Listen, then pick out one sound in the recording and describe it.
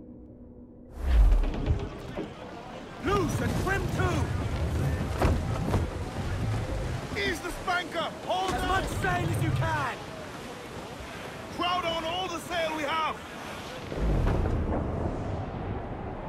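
Strong wind blows through a ship's rigging.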